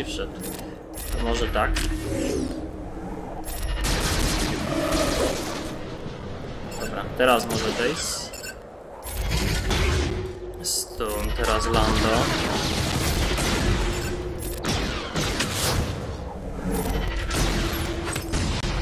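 Blaster shots and battle effects ring out in quick bursts.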